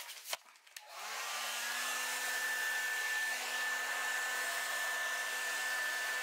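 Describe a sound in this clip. A heat gun blows with a steady whirring hiss.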